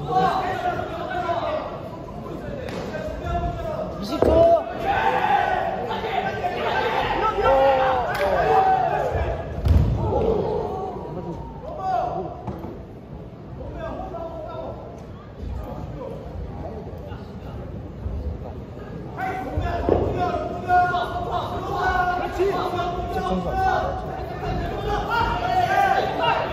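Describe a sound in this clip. Men shout in a large echoing hall.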